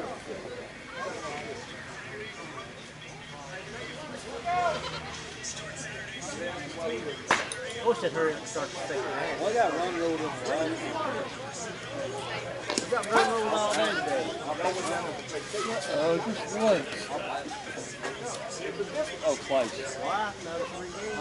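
Men talk and call out nearby outdoors.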